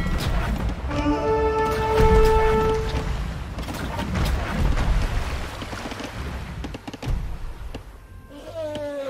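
Cannons boom and clatter in a sea battle.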